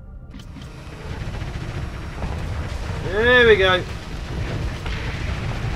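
Laser weapons fire in a steady, rumbling stream.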